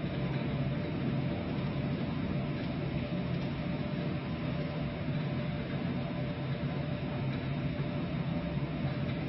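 Waves wash against the hull of a ship.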